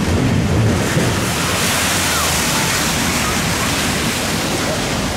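A wave crashes against a sea wall and sprays.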